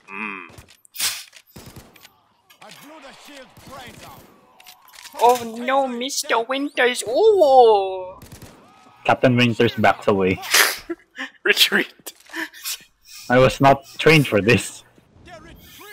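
A shotgun fires loud single blasts.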